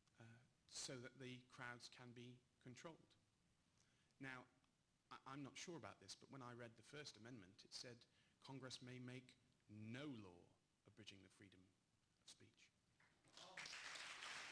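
A man speaks steadily into a microphone in a large room.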